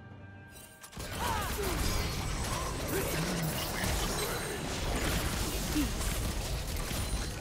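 Spell effects whoosh and crackle in a fast fantasy battle.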